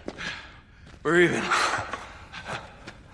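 A second man answers curtly, close by.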